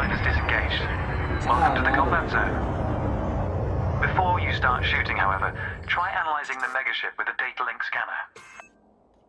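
A man talks into a headset microphone with animation.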